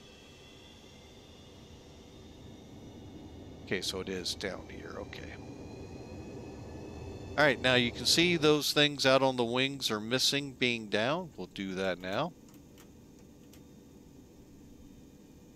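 A jet engine whines at idle, its pitch rising slightly.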